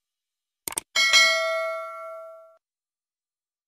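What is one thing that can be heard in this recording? A bell chimes once and rings out.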